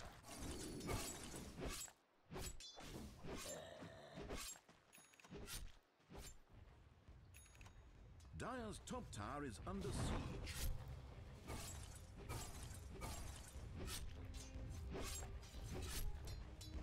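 Game combat effects clash, crackle and zap in quick bursts.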